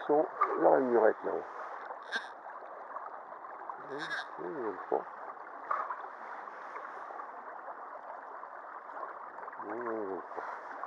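A shallow stream babbles and ripples over rocks.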